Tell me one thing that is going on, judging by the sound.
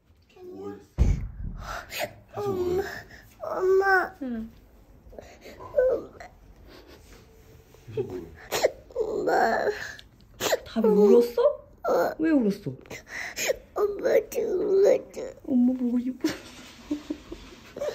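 A little girl cries and whimpers close by.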